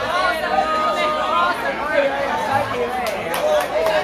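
A man talks loudly and close up over a noisy crowd.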